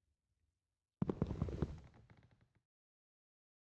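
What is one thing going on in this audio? A wooden boat splashes down onto water.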